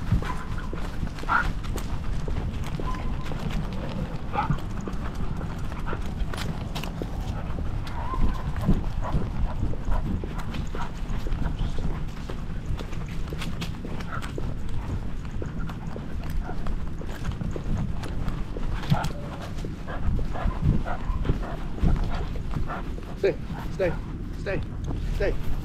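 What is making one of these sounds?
A dog's collar tags jingle softly as the dog walks.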